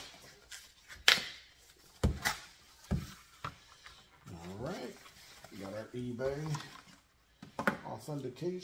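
Cardboard rustles and taps as a box is handled.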